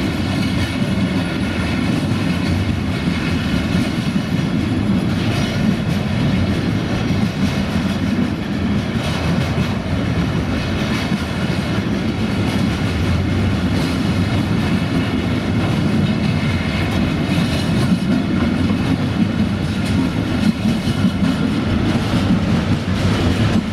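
A long freight train rumbles past close by, its wheels clattering over the rail joints.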